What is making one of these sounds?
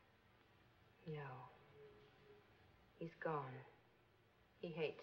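A woman answers softly.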